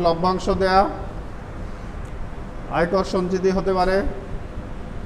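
A man speaks nearby in short phrases.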